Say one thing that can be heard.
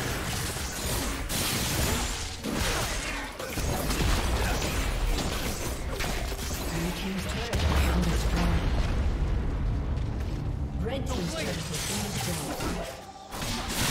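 Fantasy game spells crackle and hit in a busy fight.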